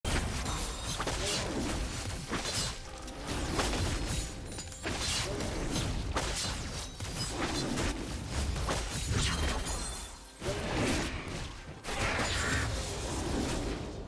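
Game combat effects clash, slash and whoosh in quick bursts.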